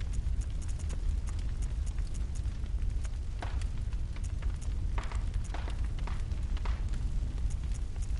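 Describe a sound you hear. A menu cursor clicks softly as it moves between items.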